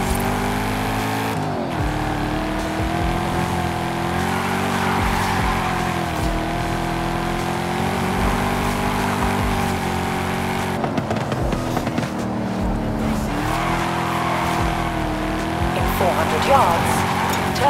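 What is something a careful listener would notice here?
A sports car engine roars steadily, with its pitch rising and falling as it shifts gears.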